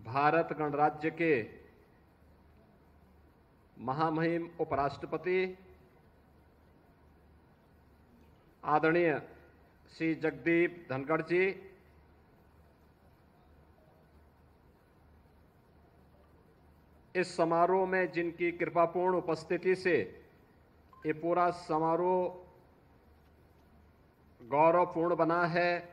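A middle-aged man delivers a speech through a microphone in short bursts, with pauses between.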